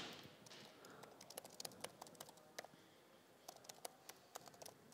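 Keys click quickly on a laptop keyboard.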